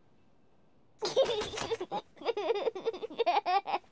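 A young child laughs and talks with animation, close by.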